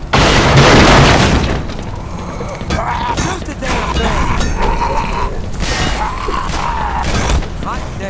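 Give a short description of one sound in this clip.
A monster snarls and groans close by.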